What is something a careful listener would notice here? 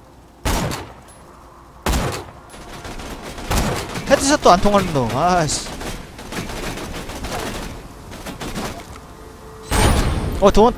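A rifle fires loud single shots that echo briefly.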